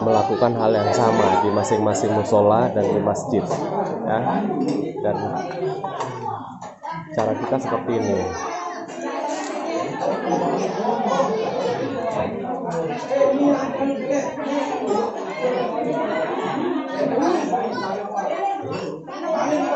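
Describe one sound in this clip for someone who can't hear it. Spoons and plates clink.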